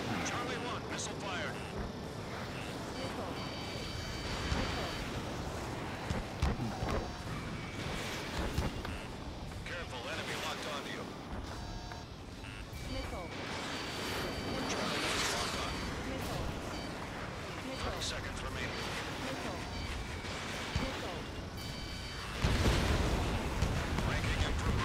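A jet engine roars steadily.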